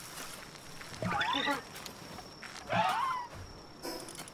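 A small cartoon creature lets out high, chirping cries twice.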